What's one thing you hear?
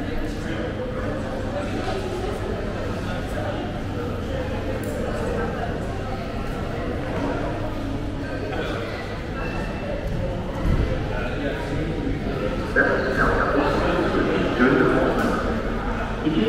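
Voices murmur and echo around a large hall.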